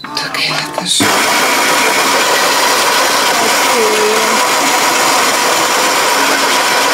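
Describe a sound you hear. A coffee machine whirs and hums loudly and steadily.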